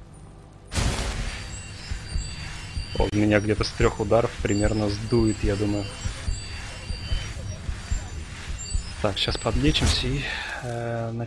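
A magic spell crackles and hums steadily.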